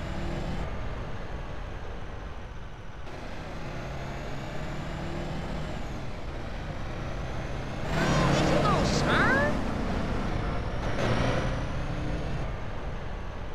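A bus engine hums and revs steadily.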